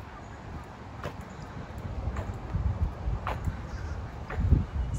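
A walking cane taps on pavement.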